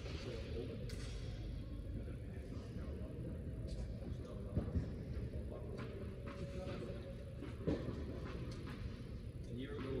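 Tennis balls are struck with rackets and bounce, echoing in a large indoor hall.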